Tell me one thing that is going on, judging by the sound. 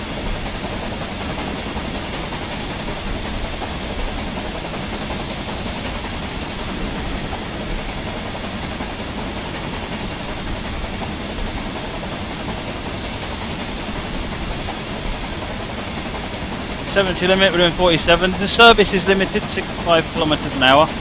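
A steam locomotive chugs steadily along the rails.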